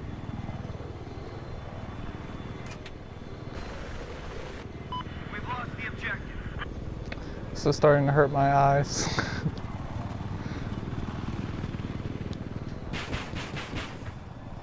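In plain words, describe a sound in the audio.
An attack helicopter's rotor thrums in flight.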